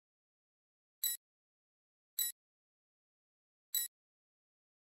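Short electronic chimes ping as a reward meter slides back and forth.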